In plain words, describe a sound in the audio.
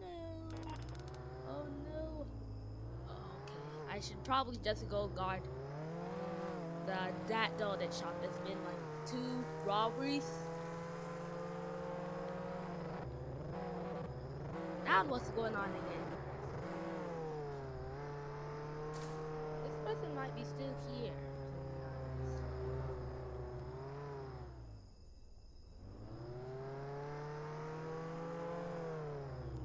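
A car engine hums and revs as it drives, then idles briefly before revving up again.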